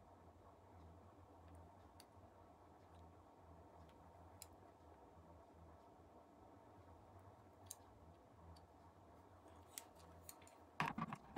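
A metal measuring tool clicks softly as its jaws slide.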